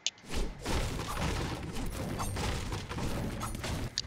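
A pickaxe strikes wood with sharp knocks.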